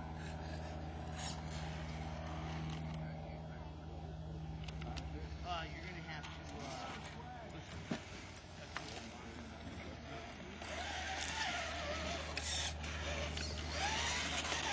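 A small electric motor whines steadily as a toy truck crawls over rock.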